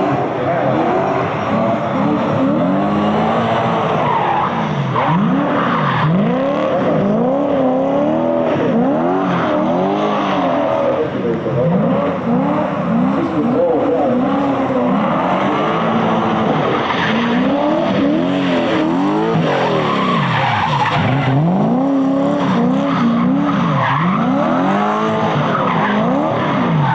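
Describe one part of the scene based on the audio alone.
Car engines rev loudly and rise and fall in pitch.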